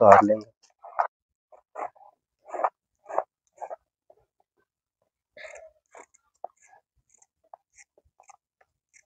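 A vegetable peeler scrapes along a carrot.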